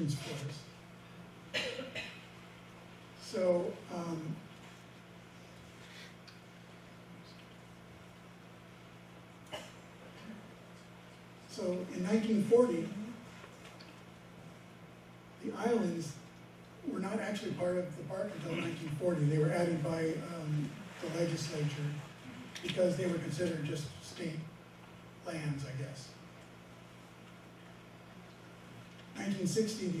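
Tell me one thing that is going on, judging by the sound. A man speaks calmly through a microphone, pausing often, in a large room.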